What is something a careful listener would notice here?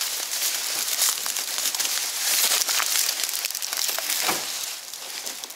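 Dry reeds rustle and crackle against a boat.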